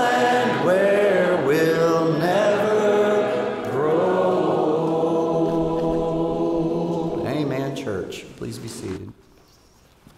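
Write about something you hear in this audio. A congregation sings a hymn together in a large echoing hall.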